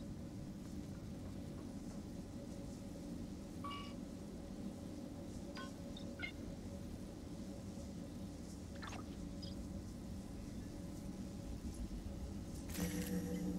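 A low mechanical hum drones steadily.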